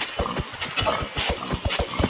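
A pig grunts close by.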